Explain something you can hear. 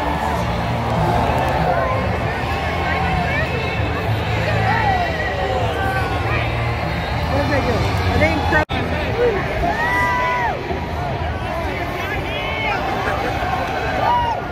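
Women and men nearby shout and whoop with excitement.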